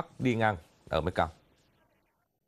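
A young man speaks calmly and clearly, as if reading out through a microphone.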